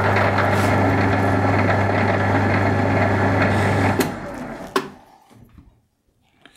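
A lathe motor hums steadily, then switches off and winds down.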